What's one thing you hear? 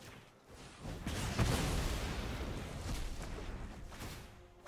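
A fiery magical blast bursts with a loud whoosh.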